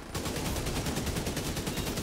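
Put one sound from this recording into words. Flames roar and crackle from an explosion.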